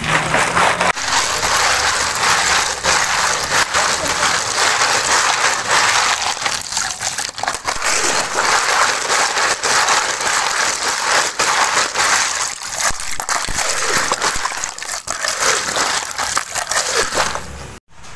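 Ice cubes clatter and crunch as a stick stirs them.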